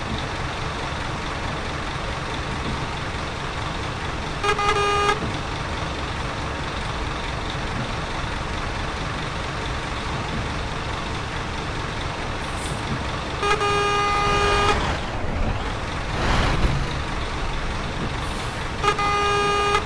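Rain patters steadily on a bus windscreen.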